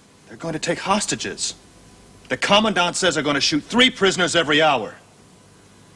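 A man speaks in a low, serious voice nearby.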